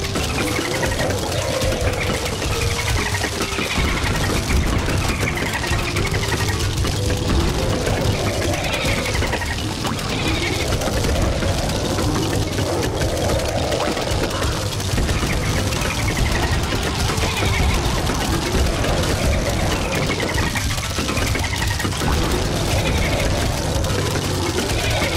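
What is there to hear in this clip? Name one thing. Rapid pea shots pop and thud against zombies.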